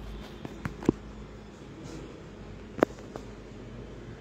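Papers and small objects knock on a desk.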